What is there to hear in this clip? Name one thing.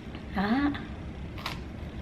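A woman bites into a strawberry.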